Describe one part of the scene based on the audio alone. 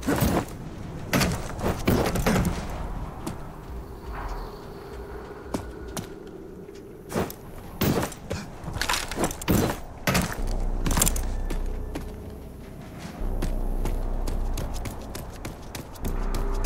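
A gun fires loud shots in quick bursts.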